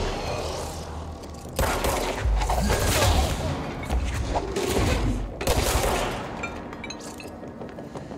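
Gunfire bursts in short volleys.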